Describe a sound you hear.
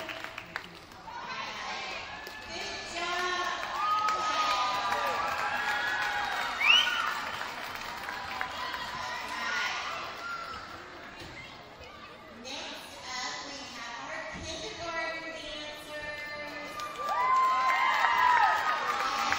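Many young children chatter and shout excitedly in a large echoing hall.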